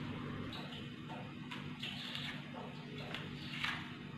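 A knife blade scrapes across a hard surface.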